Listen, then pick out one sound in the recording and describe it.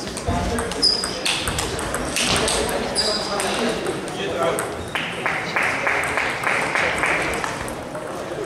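A ping-pong ball clicks back and forth between paddles and the table in a large echoing hall.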